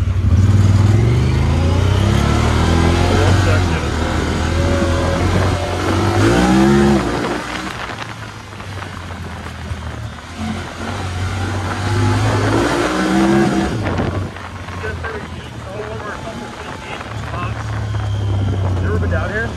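Tyres crunch and rumble over a bumpy dirt trail.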